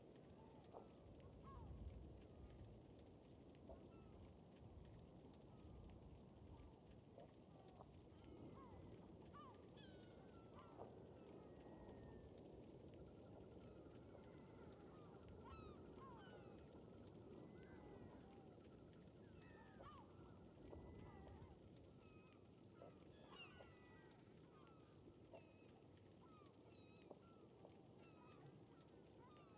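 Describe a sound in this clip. A fire crackles softly close by.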